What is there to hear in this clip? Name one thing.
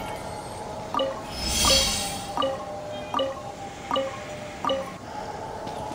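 Bright chimes ring out one after another at an even pace.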